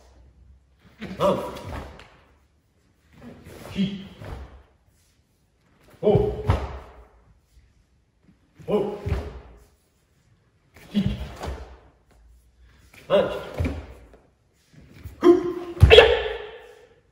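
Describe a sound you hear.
An older man speaks calmly in short phrases in an echoing hall.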